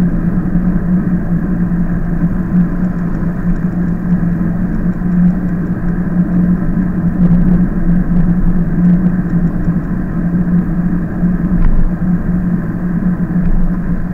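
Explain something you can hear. Bicycle tyres roll and rattle over rough road.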